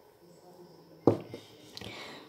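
A small plastic toy knocks over onto a soft surface.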